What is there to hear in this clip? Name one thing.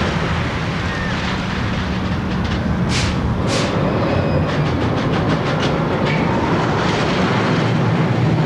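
A roller coaster car rumbles and clatters along its track.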